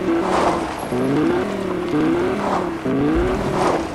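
A car crashes into another car.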